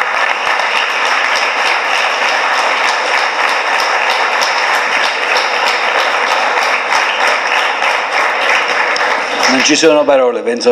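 An audience claps and applauds in a hall.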